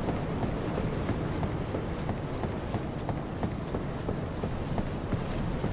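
Footsteps knock on a wooden ladder rung by rung.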